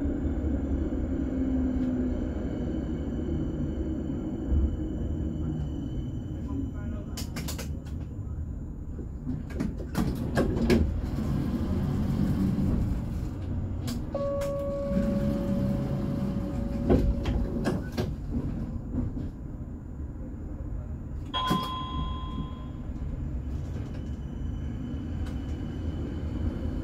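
A tram rumbles and hums steadily along its tracks.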